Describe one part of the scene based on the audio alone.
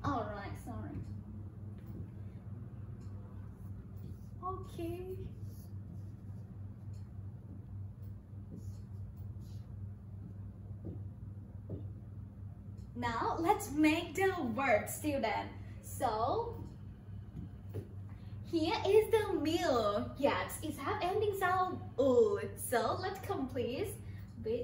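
A woman speaks clearly and with animation into a microphone, as if teaching.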